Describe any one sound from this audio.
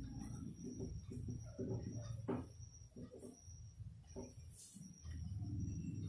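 A cloth rubs and squeaks across a whiteboard.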